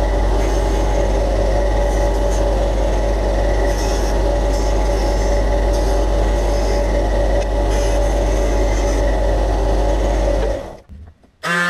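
A bench disc sander whirs steadily.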